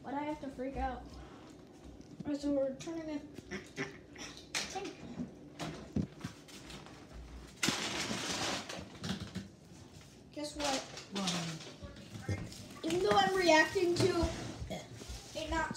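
A young child speaks excitedly close by.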